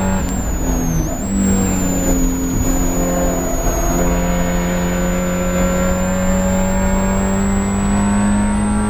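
A Spec Miata's four-cylinder engine pulls hard under load, heard from inside the car.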